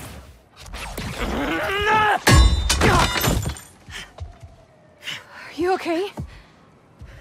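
A young man cries out in pain, then groans and gasps.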